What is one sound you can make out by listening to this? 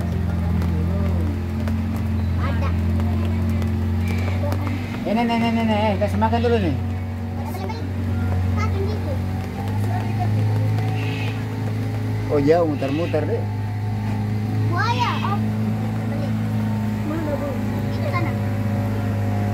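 A boat's motor hums steadily.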